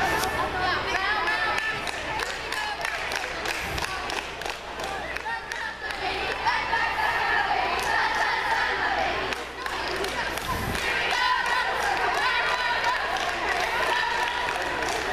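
A group of young girls chant and shout loudly outdoors.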